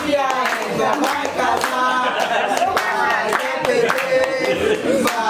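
Women clap their hands in rhythm.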